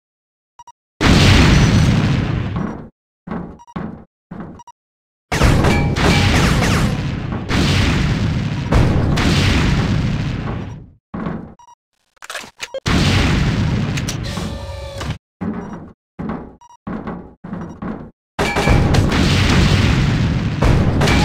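A heavy gun fires booming shots that echo and roll away.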